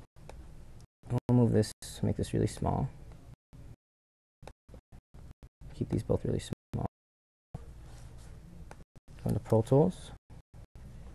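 A man speaks calmly and closely into a microphone, in short phrases.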